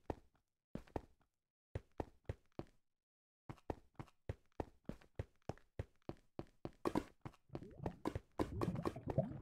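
Footsteps crunch steadily on stone.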